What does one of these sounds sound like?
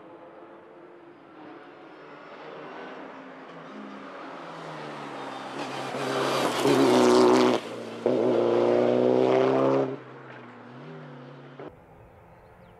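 A rally car engine roars at high revs as the car speeds past close by.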